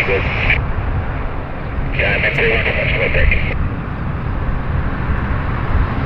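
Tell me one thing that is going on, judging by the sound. A propeller aircraft's engines drone steadily in the distance.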